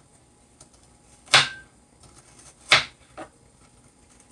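A knife chops on a cutting board.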